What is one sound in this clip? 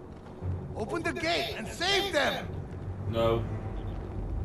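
A man cries out with strain, close by.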